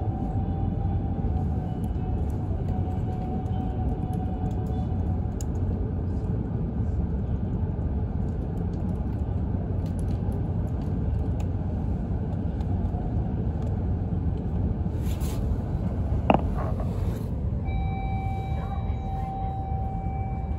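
A train rumbles steadily, heard from inside a carriage.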